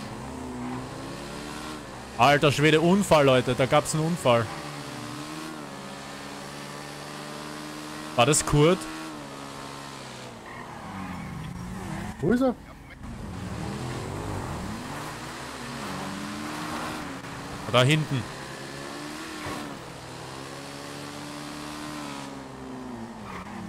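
A motorbike engine hums and revs steadily.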